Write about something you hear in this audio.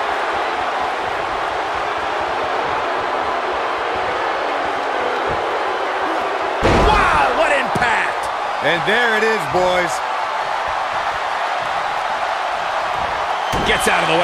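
A large crowd cheers and murmurs steadily.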